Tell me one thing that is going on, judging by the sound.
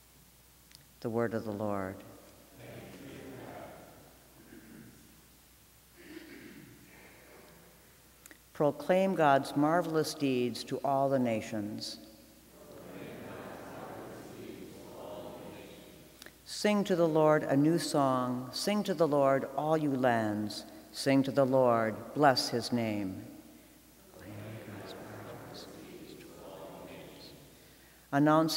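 A woman reads aloud through a microphone in a large echoing hall.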